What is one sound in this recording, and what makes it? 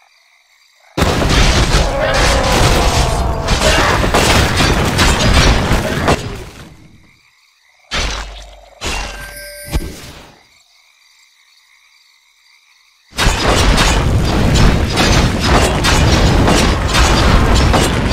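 Spell effects and weapon clashes crackle and boom in a game battle.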